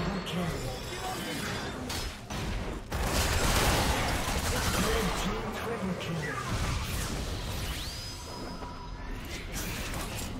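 Magic spells crackle and burst during a fast fight.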